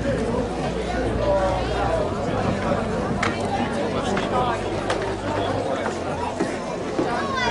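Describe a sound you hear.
A crowd of spectators chatters and calls out across an open field outdoors.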